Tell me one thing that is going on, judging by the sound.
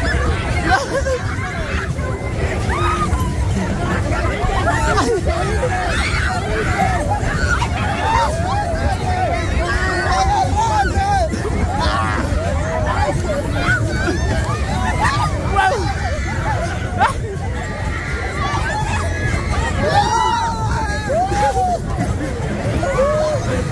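Young women scream and laugh loudly close by.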